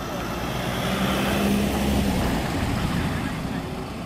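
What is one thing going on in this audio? A vehicle engine roars past close by.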